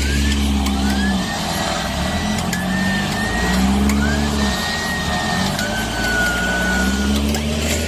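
A winch motor whines as it pulls a cable.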